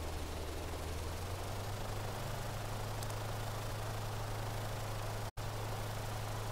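A blimp's engines drone with a steady low hum.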